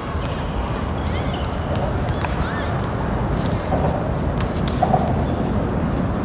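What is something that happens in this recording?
A bat cracks against a baseball outdoors.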